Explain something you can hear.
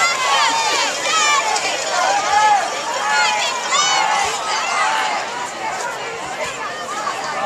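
A crowd of young men cheers and shouts outdoors.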